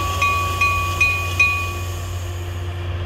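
A train bell rings several times in quick succession.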